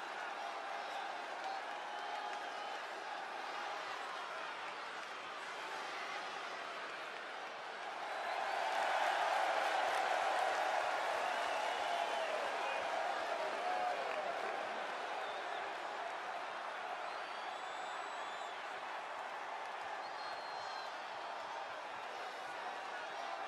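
A large crowd cheers and roars throughout, echoing in a big arena.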